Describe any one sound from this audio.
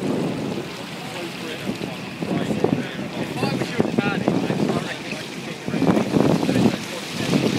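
Water splashes and churns alongside a moving ship's hull.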